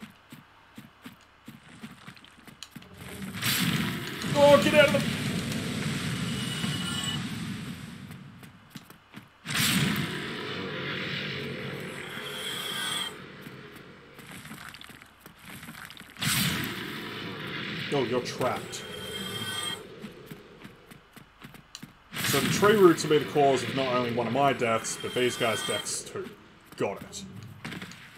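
Bare footsteps patter on stone.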